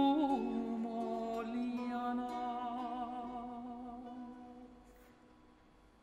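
A man sings a sustained note with vibrato that fades away in an echoing hall.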